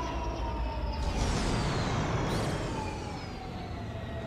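A video game menu chimes as a panel pops up.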